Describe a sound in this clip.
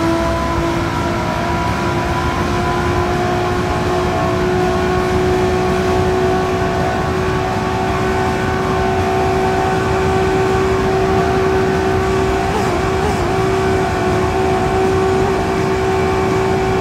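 A racing car engine roars at high speed, its pitch slowly rising.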